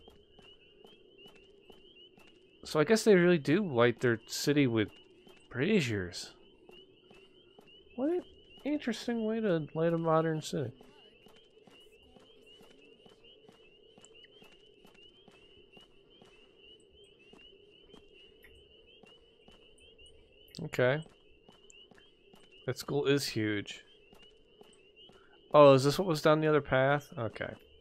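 Footsteps run quickly over pavement.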